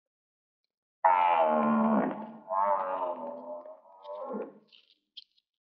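A woman wails loudly in grief.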